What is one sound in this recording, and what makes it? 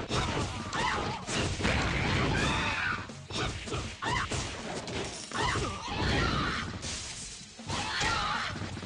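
Punches and kicks land with heavy thuds in quick succession.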